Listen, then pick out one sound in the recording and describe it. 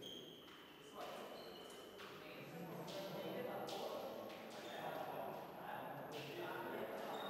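Fencing blades clash and clink sharply.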